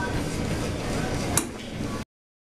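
A metal weight plate clanks down.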